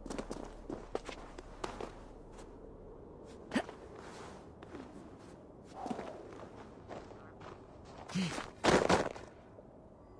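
Hands scrape and grip on icy rock while climbing.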